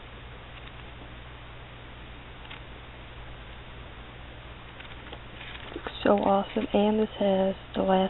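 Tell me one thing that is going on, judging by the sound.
Paper pages rustle as they are turned.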